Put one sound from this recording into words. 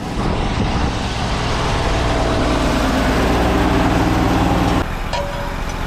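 A machine engine drones loudly nearby.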